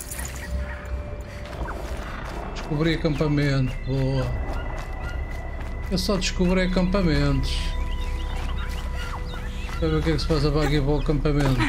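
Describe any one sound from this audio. Footsteps run through rustling undergrowth.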